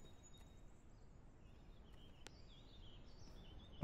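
A soft interface click sounds as a menu opens.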